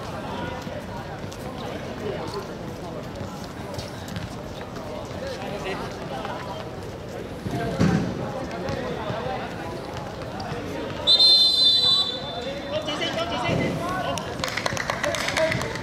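Men shout to each other across an outdoor football pitch.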